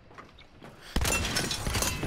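A gunshot fires with a loud, sharp crack.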